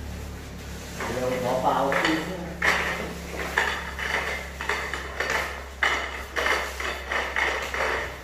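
Paint rollers roll and swish against a wall.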